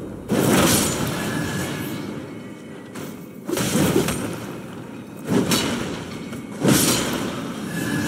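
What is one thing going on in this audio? Wooden crates smash and splinter with loud crashes.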